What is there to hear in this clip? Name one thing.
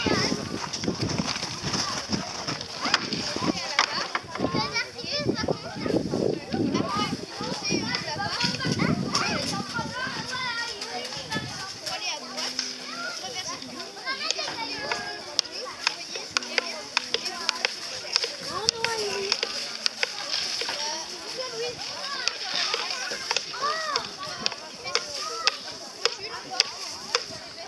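A young boy talks and chatters nearby.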